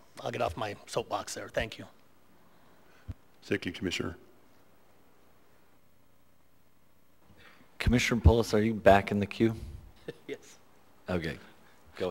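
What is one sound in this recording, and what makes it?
An older man speaks into a microphone in measured bursts, with pauses between phrases.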